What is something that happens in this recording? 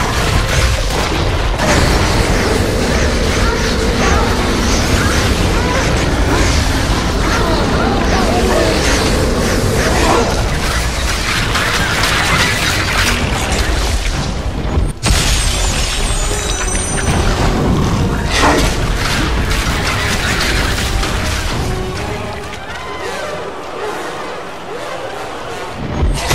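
Monster heads roar and growl.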